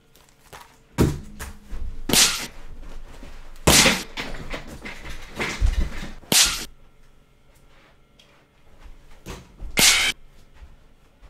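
Heavy thumps land on a wooden floor.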